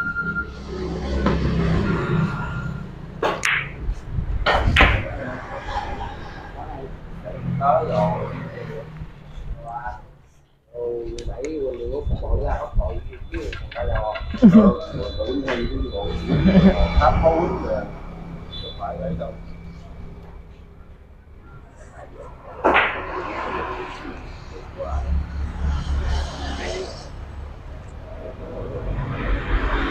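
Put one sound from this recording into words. Men chat casually nearby.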